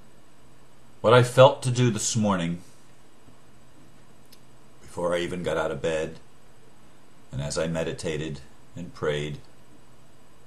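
An older man speaks calmly and close to a microphone, in short phrases with pauses.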